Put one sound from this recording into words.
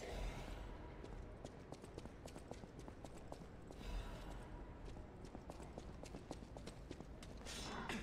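Footsteps tap steadily on a hard stone floor.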